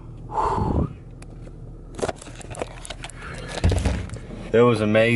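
A car engine hums steadily inside the cabin.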